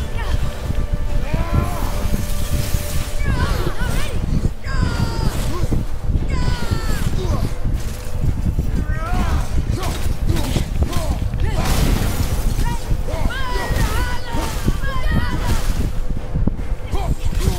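A creature shrieks loudly.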